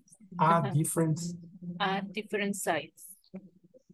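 A woman speaks clearly and slowly through an online call.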